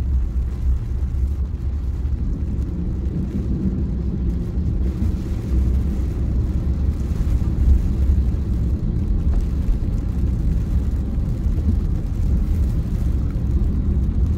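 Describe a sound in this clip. A car engine rumbles low and steady from inside the vehicle.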